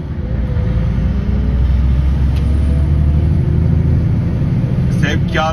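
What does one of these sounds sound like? A vehicle engine hums steadily with a low rumble from inside a moving vehicle.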